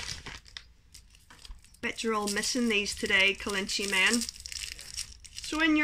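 A woman unwraps a crinkly wrapper with her hands.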